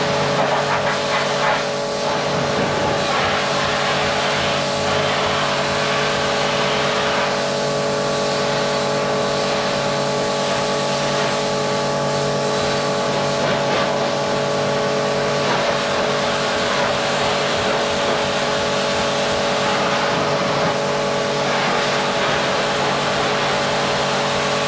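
A pressure washer jet hisses and sprays water against a metal trough.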